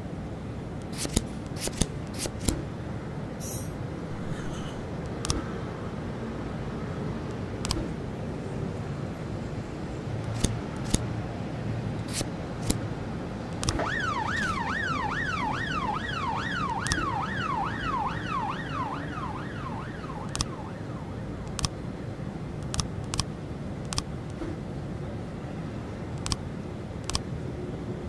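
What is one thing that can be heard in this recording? Game menu buttons click sharply now and then.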